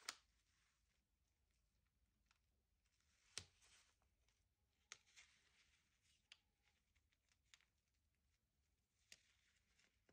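Paper taps and clicks softly as sheets are pressed together.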